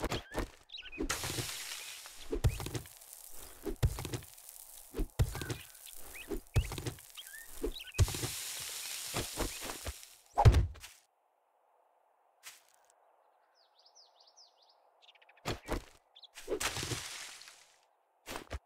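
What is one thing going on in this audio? Loose dirt crumbles and scatters.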